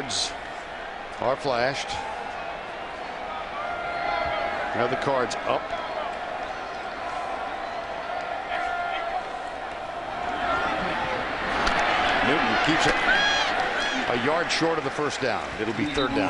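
A large stadium crowd cheers and roars, growing louder toward the end.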